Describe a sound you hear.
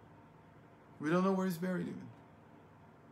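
An older man speaks calmly and briefly, close to a microphone.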